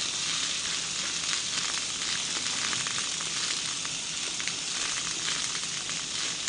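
Meat sizzles loudly on a hot grill.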